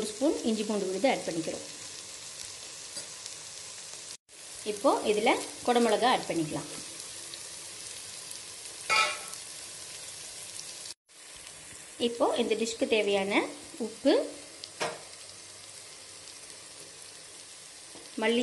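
Chopped onions sizzle in oil in a clay pot.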